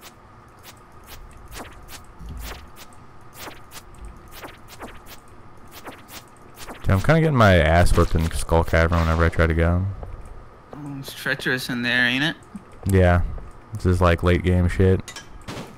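Footsteps tap quickly on a stone floor.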